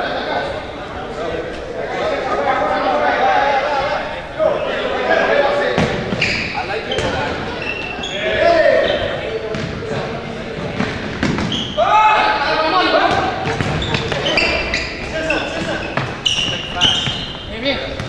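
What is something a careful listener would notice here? A ball is kicked with sharp thumps on a hard floor.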